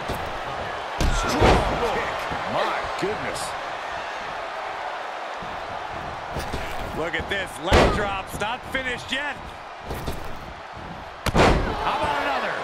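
A body slams hard onto a wrestling ring mat with heavy thuds.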